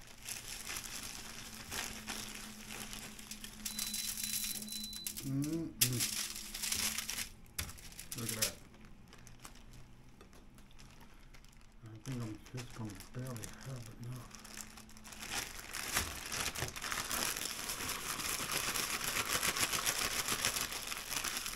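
A plastic bag crinkles and rustles as it is handled.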